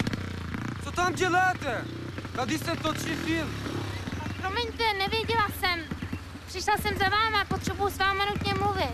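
A young woman sings with a wavering voice.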